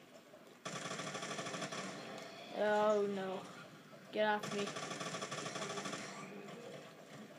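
Rapid video game gunfire rattles through a speaker.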